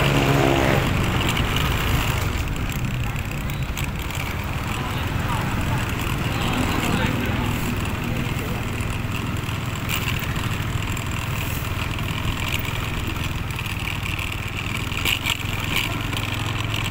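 A motor scooter engine hums steadily while riding along a wet street.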